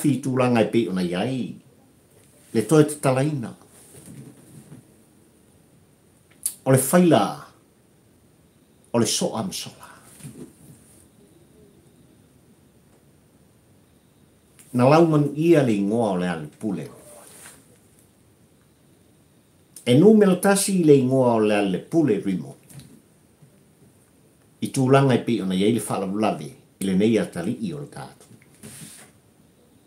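An elderly man talks calmly in short bursts with pauses.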